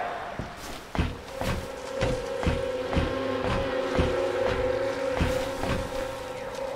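Footsteps thud on a metal ladder as it is climbed.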